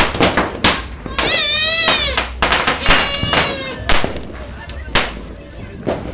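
A firework fountain hisses and crackles.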